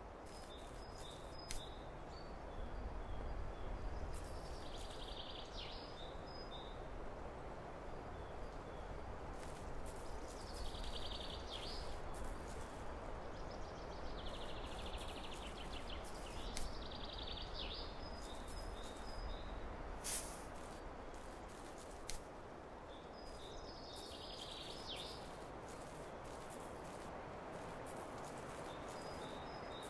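Footsteps crunch softly over dry leaves and dirt.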